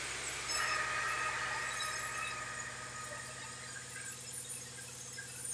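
A sawmill machine runs with a steady mechanical drone.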